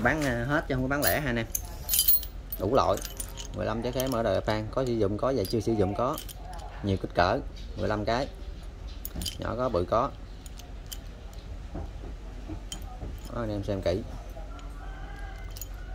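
Small metal parts clink together in a hand.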